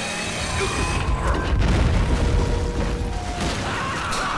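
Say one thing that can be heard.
An explosion booms and rumbles.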